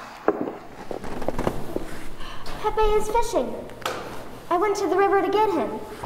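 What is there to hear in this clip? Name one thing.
A boy speaks loudly on stage, projecting in a large hall.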